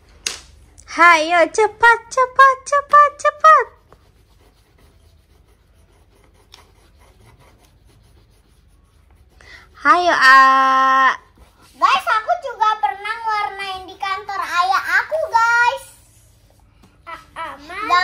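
A small boy talks nearby.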